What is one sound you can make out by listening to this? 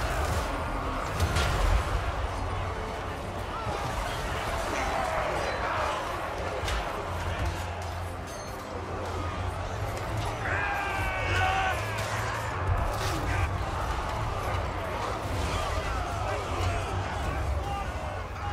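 Many soldiers shout in a battle.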